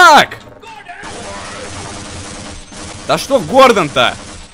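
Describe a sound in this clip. A machine gun fires in a rapid burst.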